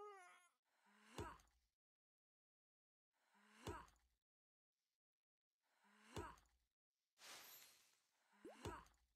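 An axe chops into wood with repeated heavy blows.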